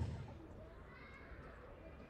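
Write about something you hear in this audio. A girl speaks into a microphone over a loudspeaker.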